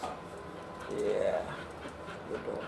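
A dog whimpers briefly.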